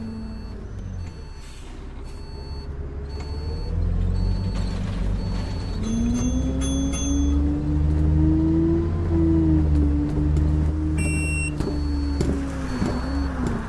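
A bus engine hums and rises in pitch as it speeds up.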